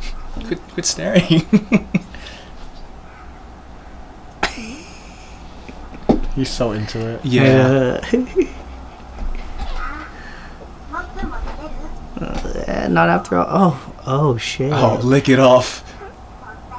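Young men laugh and chuckle nearby.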